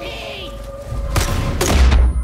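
A grenade launcher fires with a thump.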